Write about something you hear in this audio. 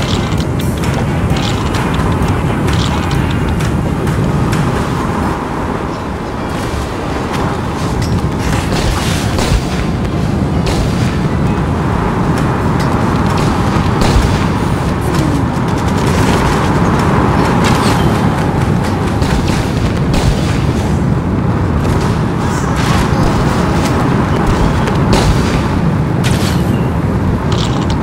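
Fiery blasts and explosions burst repeatedly.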